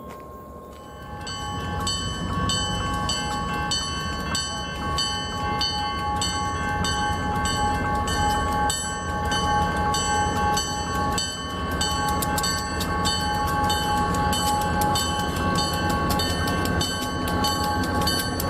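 A diesel locomotive engine rumbles as a train rolls slowly past.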